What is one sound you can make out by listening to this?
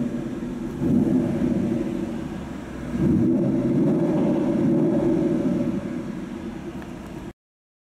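A car engine rumbles and revs up twice, roaring loudly.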